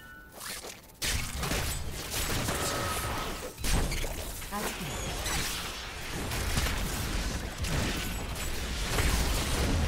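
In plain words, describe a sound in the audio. Magical blasts boom and rumble.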